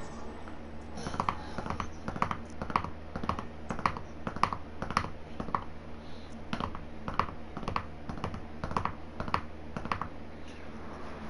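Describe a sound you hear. A game's score counter ticks rapidly as points tally up.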